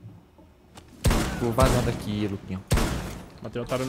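Gunfire bursts in sharp, rapid shots.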